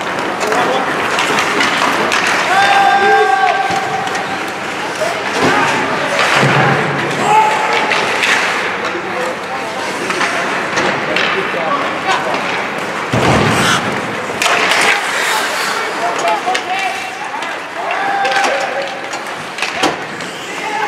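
Young players shout to one another across the rink.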